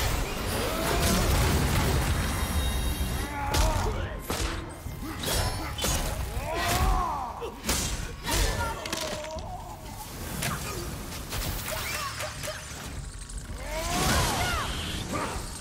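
Magical blasts crackle and burst.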